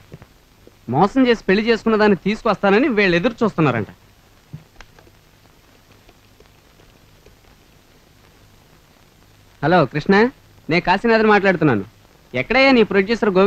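A man speaks urgently and loudly.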